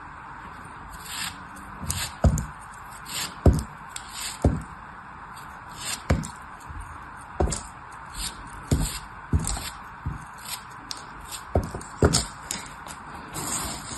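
A blade slices through packed sand with soft crunches.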